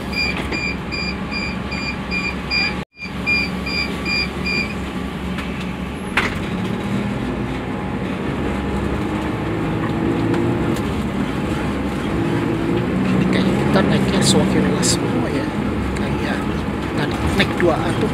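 A crowded bus rumbles steadily along.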